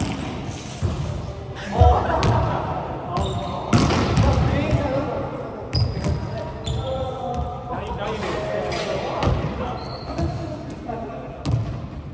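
Young adult players call out across a large echoing hall.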